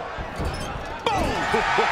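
A body thuds hard onto a wrestling ring mat.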